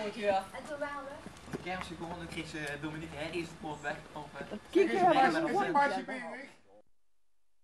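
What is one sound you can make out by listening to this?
People talk close by outdoors.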